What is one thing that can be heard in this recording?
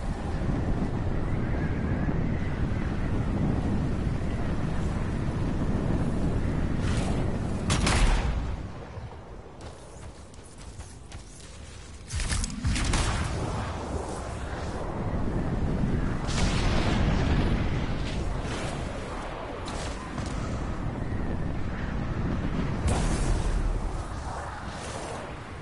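A jet suit roars steadily as it flies.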